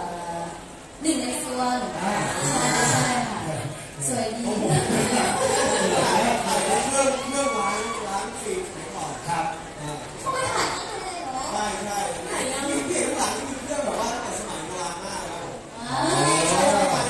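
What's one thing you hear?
A young man talks through a microphone over loudspeakers.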